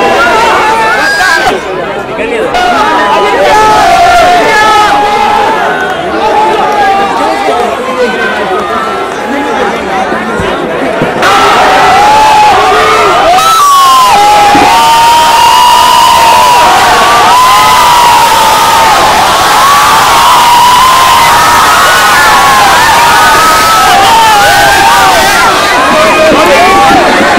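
A large crowd cheers and screams excitedly nearby.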